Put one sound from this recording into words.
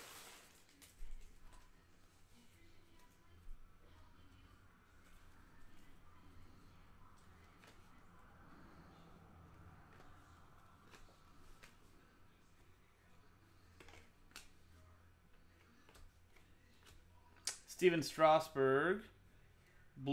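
Trading cards rustle and click as they are shuffled.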